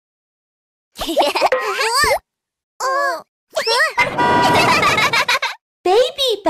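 Young cartoon-like child voices sing and call out cheerfully.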